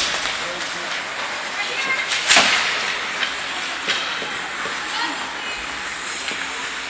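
Ice hockey skates scrape and hiss across the ice in an echoing rink.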